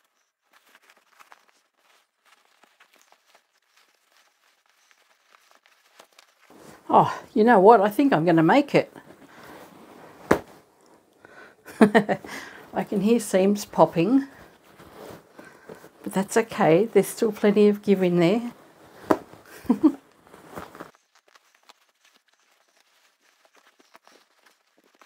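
Fabric rustles and crumples as it is handled.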